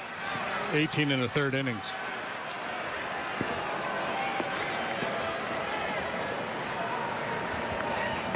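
A crowd murmurs steadily in a large open-air stadium.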